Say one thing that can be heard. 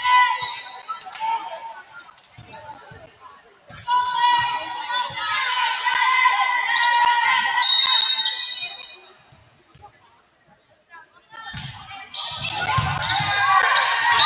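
A volleyball thumps off players' hands and arms.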